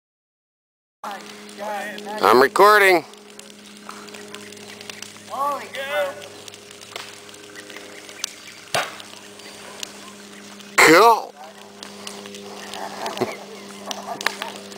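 A bonfire crackles nearby.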